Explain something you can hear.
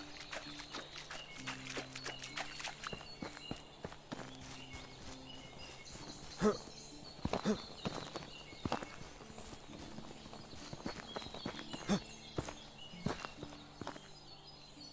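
Footsteps crunch through dry brush and gravel.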